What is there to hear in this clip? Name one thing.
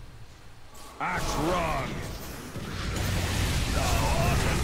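Game spell effects and combat sounds clash and crackle.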